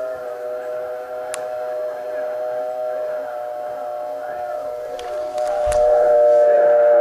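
A steady, high electronic tone sounds from a small speaker.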